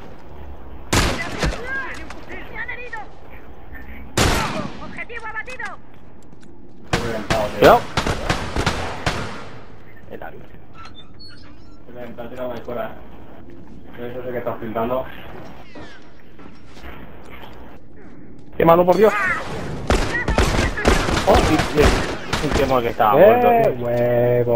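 Gunshots crack loudly in quick bursts.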